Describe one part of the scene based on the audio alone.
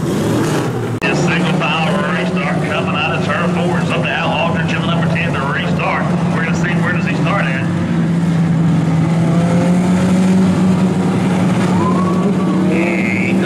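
Several race car engines drone together in the distance, outdoors.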